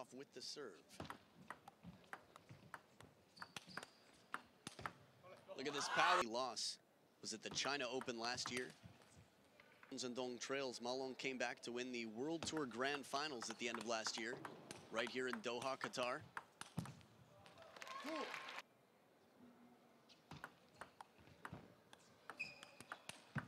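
A table tennis ball clicks back and forth on a table and paddles.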